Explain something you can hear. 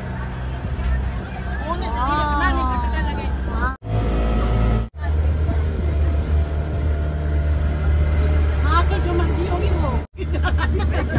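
A boat engine drones steadily and close by.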